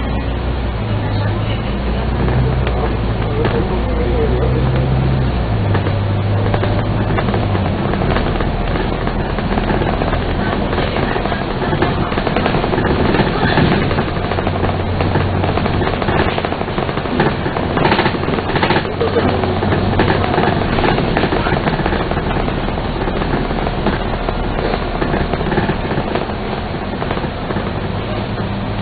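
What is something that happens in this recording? A bus engine rumbles and hums as the bus drives along.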